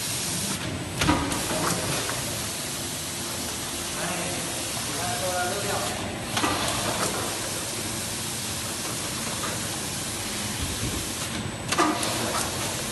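A pneumatic press thumps and hisses at regular intervals.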